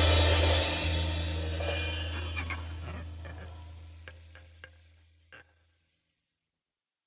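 Electric guitars and bass ring out on a final chord and slowly fade away.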